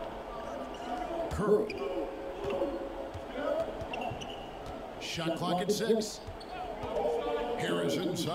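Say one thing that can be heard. Sneakers squeak on a basketball court.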